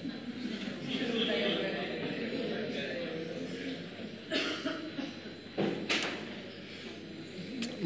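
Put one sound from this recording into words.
A crowd laughs in a room.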